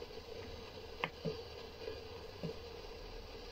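A knob clicks softly as it is turned.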